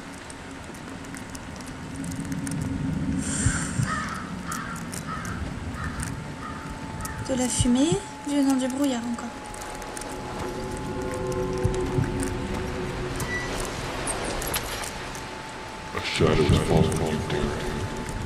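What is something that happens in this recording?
Rain falls.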